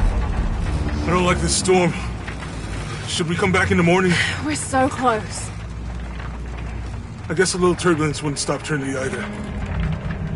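A young woman speaks with feeling, close by.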